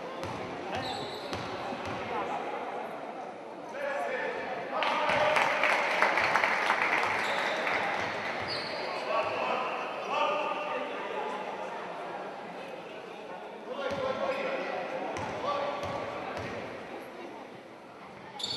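A crowd of spectators cheers and chatters in an echoing gym.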